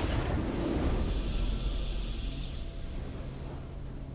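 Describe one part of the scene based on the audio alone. A triumphant game fanfare plays.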